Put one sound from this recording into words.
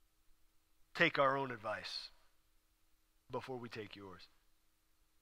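A young man speaks softly and slowly into a microphone.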